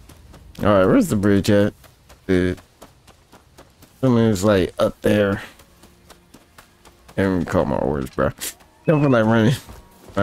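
Footsteps run over grass and stone steps.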